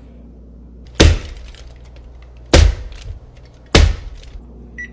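A spoon thumps hard on a firm crust.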